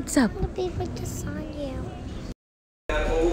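A young girl speaks close by.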